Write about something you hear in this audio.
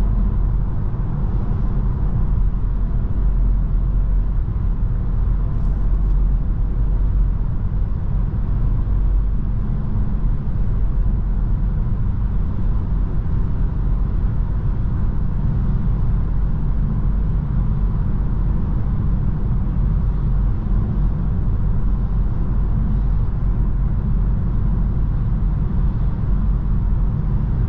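A car's engine hums steadily inside the cabin at highway speed.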